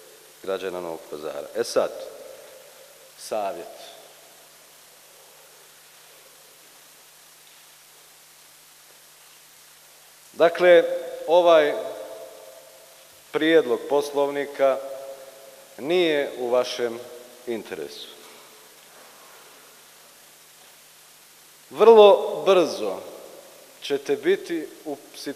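A man speaks formally into a microphone, with long pauses.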